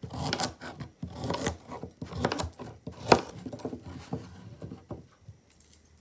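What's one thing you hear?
A knife chops through firm vegetables on a board with sharp knocks.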